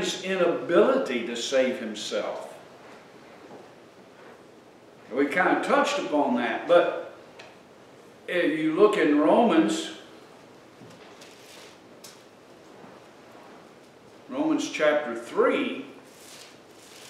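An older man speaks calmly through a microphone, in short phrases with pauses.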